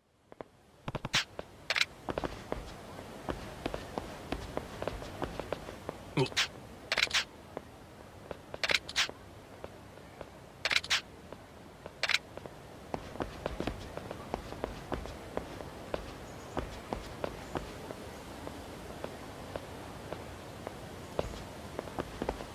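Footsteps tap quickly on hard paving.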